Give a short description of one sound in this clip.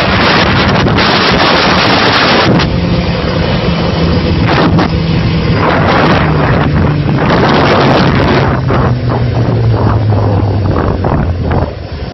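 A motorcycle engine roars steadily up close, its pitch shifting as it speeds up and slows.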